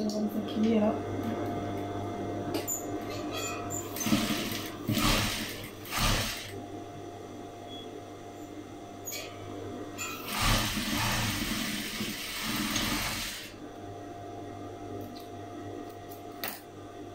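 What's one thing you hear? A sewing machine hums steadily.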